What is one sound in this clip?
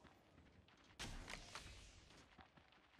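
Gunshots crack in a quick burst.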